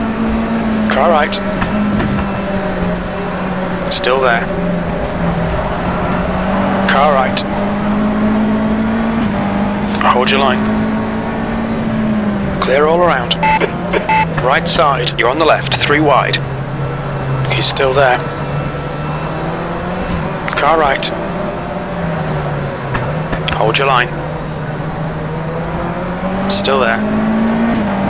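A racing car engine whines up and down as gears shift.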